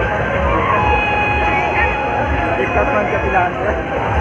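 A fairground ride clatters and rumbles as it spins.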